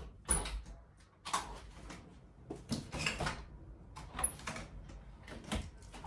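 A window handle rattles and clicks as a window is worked open.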